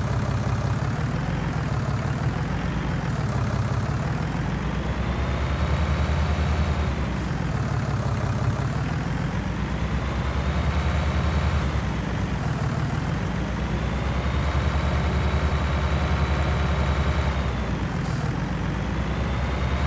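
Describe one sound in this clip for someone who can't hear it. A tractor engine rumbles steadily, rising and falling as it speeds up and slows down.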